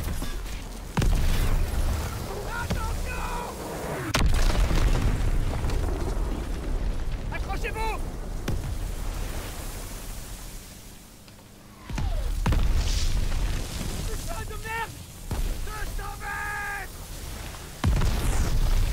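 Heavy explosions boom nearby.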